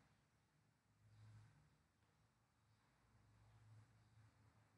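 A man speaks quietly close to a microphone.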